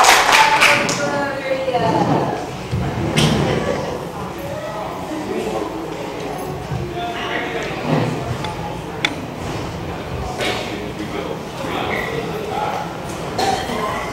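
A middle-aged woman talks with animation into a microphone over a loudspeaker.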